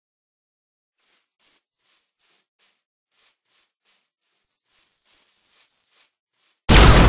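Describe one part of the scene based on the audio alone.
Footsteps crunch softly through grass.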